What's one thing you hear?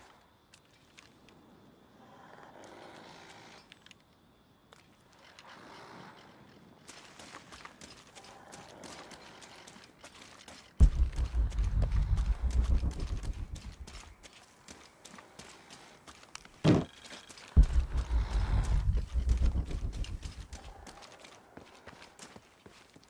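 Footsteps crunch on leaves and dirt.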